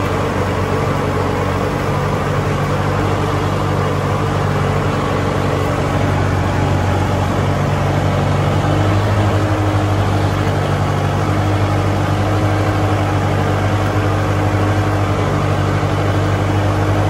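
A disc harrow churns and splashes through wet mud.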